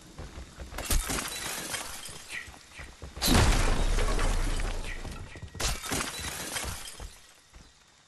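Glass shatters loudly as a window is smashed.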